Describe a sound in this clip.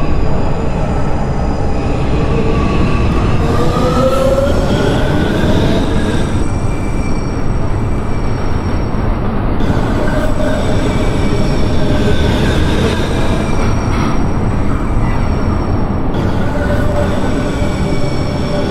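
A subway train rumbles and squeals as it rolls slowly past.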